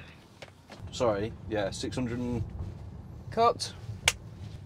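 A man speaks calmly into a clip-on microphone inside a car.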